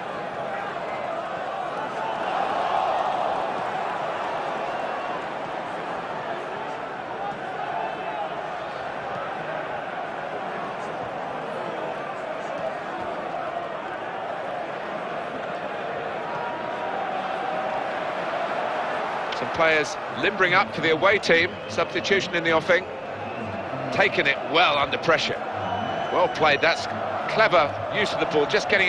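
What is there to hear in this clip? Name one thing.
A large crowd murmurs and cheers steadily in a stadium.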